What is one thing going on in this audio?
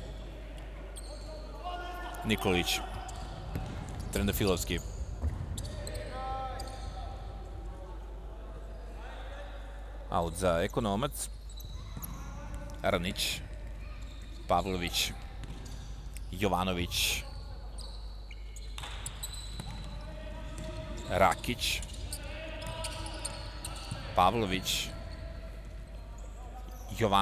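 A ball thuds as it is kicked across a wooden floor in a large echoing hall.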